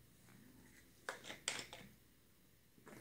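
A plastic bottle crinkles and clicks open.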